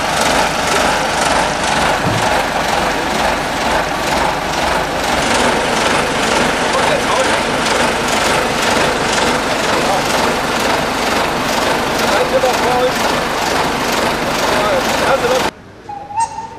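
A small diesel locomotive engine chugs loudly and steadily close by.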